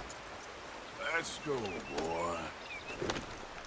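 A horse whinnies and snorts nearby.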